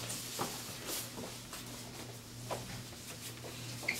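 A jacket's fabric rustles as it is pulled on.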